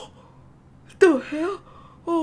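A young woman speaks in a frightened, wavering voice.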